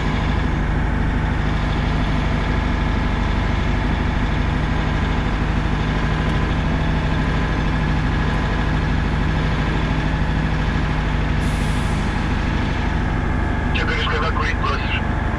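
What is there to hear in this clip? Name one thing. A heavy truck's diesel engine rumbles steadily close by.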